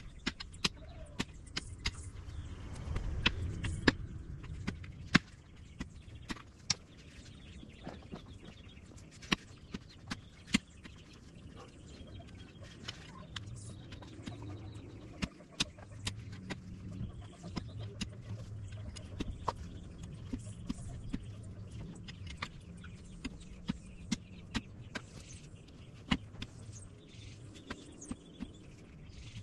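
A digging bar thuds and scrapes into hard soil and stones.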